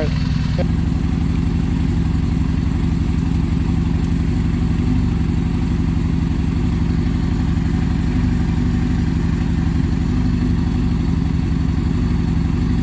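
A motorcycle engine idles nearby with a steady, throbbing low rumble.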